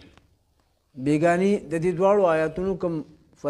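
A man speaks calmly and melodiously into a close microphone.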